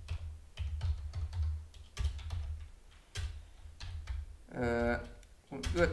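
Keys clack on a computer keyboard.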